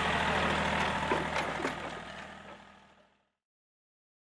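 A heavy roller crunches slowly over sand.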